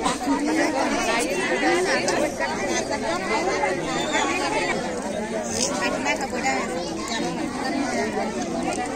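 A crowd of men and women talks and calls out loudly nearby.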